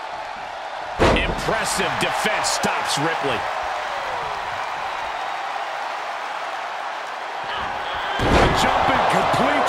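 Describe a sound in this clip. Heavy thuds of bodies slamming onto a wrestling ring mat.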